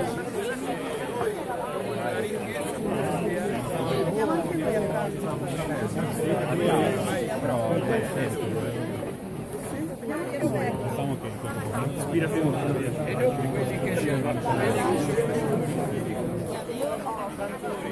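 A large crowd of men and women chatters all around.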